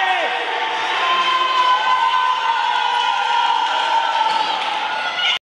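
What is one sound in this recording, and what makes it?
A crowd cheers and laughs loudly.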